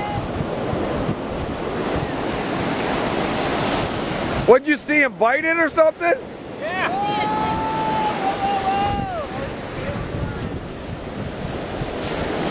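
Ocean surf breaks and washes onto a beach.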